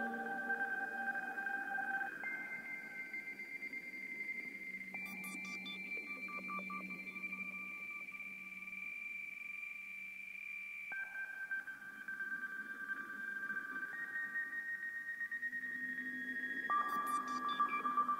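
Slow electronic music plays with long, sustained synth tones.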